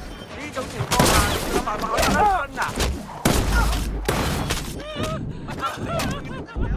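Heavy blows thud as two men brawl at close range.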